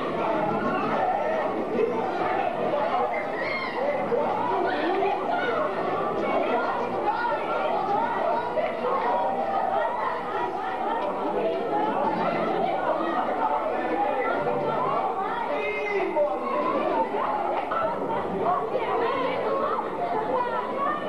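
A crowd of girls and women chatter and shout excitedly close by, in a room with some echo.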